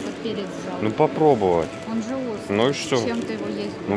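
A plastic bag rustles and crinkles in a hand.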